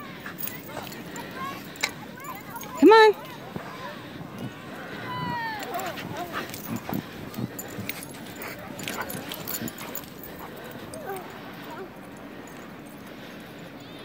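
Dogs' paws thud and crunch through deep snow as they run.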